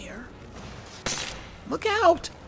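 A spell bursts with a crackling hiss.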